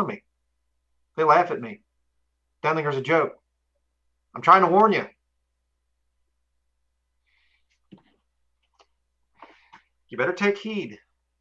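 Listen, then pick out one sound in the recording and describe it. A man speaks calmly and close through a microphone in short phrases, with pauses.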